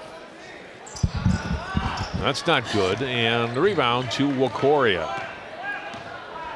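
Basketball players' footsteps thud and squeak on a wooden court.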